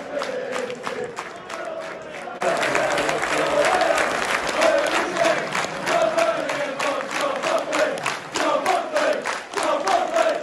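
A crowd claps in rhythm.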